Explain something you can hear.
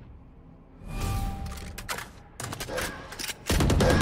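A gun is swapped with metallic clicks.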